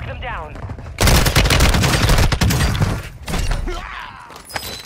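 A gun fires in rapid bursts, loud and close.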